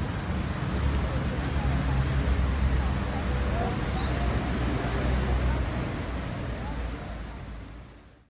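Traffic rumbles steadily on a nearby street.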